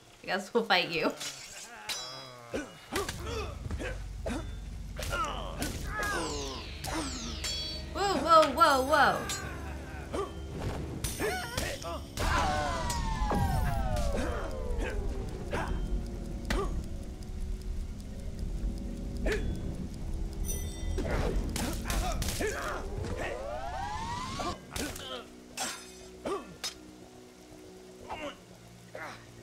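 Swords clash and strike.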